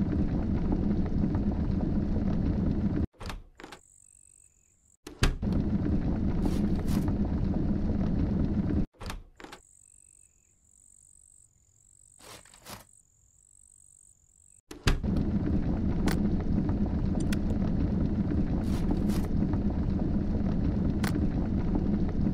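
A fire crackles and roars in a fireplace.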